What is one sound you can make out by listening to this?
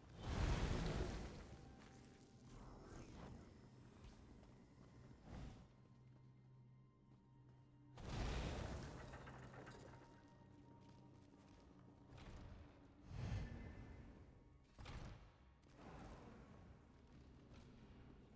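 Magic spells burst with loud whooshing blasts.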